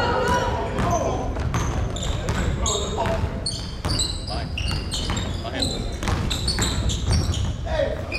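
Sneakers squeak sharply on a hardwood court, echoing in a large gym.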